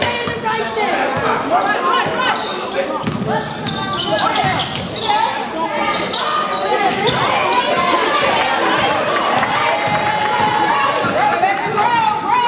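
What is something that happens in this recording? A basketball bounces on the floor in a large echoing hall.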